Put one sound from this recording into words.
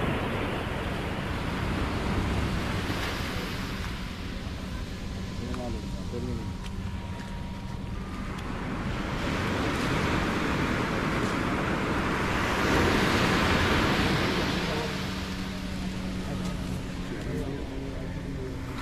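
Fish slap and slither as men toss them into baskets.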